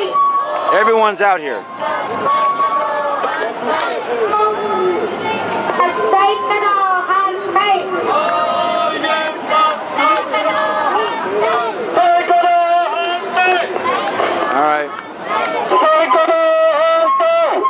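A man shouts through a megaphone outdoors.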